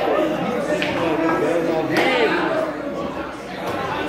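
A cue strikes a billiard ball with a sharp click.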